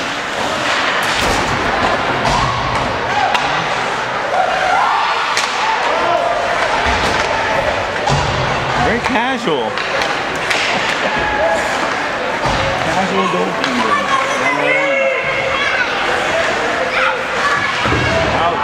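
Skates scrape across the ice in an echoing arena.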